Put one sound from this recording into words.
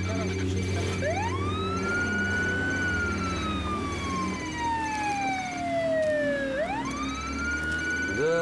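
An ambulance siren wails, slowly rising and falling.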